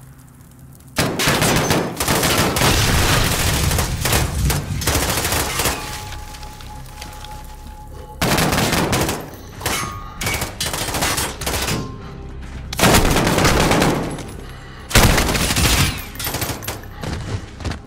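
Rifle fire rings out in loud bursts that echo around a hard room.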